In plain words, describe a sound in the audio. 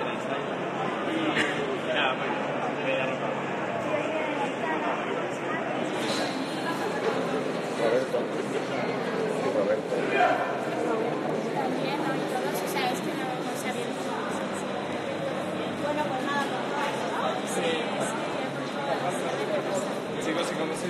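A crowd murmurs and chatters.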